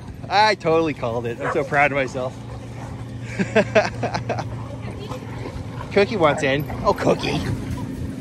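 Dogs whine and yelp excitedly while playing close by.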